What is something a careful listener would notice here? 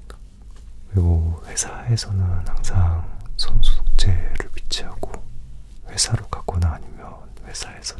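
A young man speaks softly and close up.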